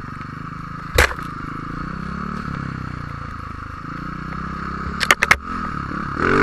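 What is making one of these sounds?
Branches scrape and thump against the snowmobile.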